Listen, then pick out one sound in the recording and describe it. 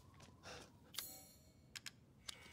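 Short menu clicks sound a few times.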